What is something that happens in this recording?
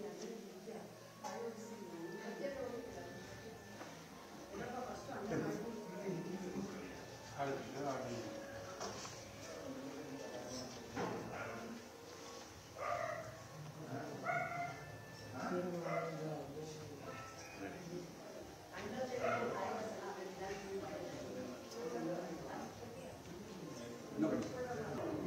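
A crowd of men and women chatters indoors.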